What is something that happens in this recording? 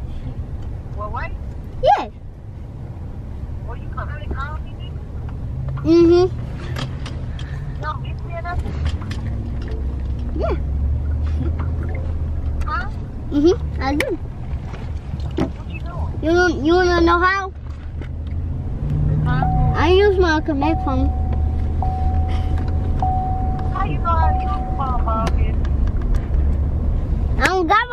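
A young child talks on a phone close by.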